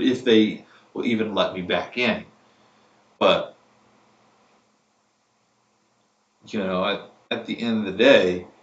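A man speaks close by, with animation.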